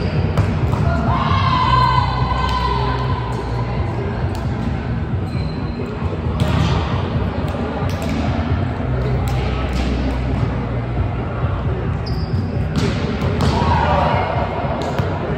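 Shoes squeak on a hard court.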